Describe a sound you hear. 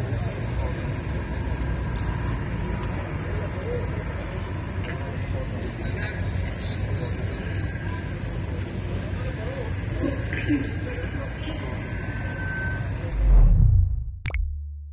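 Many men murmur and talk quietly in a crowded room.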